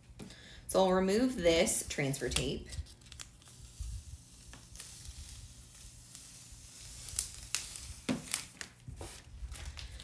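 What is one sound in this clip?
Transfer tape crinkles softly as it is peeled off and rubbed down.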